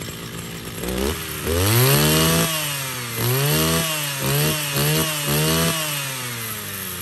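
A small petrol engine revs up sharply in quick bursts.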